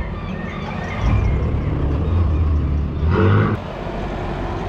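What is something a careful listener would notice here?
A pickup truck drives past close by.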